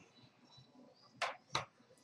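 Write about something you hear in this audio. Poker chips clatter onto a table.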